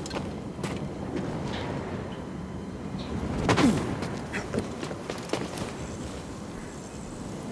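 Footsteps scrape on rock.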